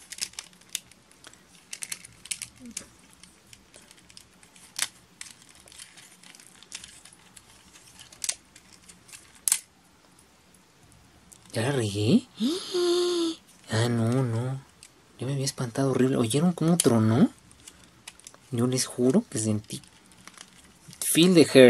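Plastic parts click and snap as hands move the pieces of a toy.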